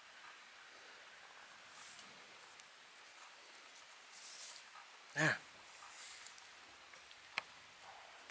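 A cord rubs and swishes as hands tie a knot.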